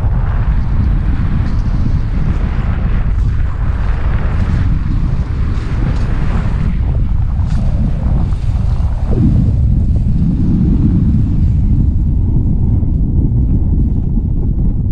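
Wind rushes and buffets the microphone in flight under a paraglider.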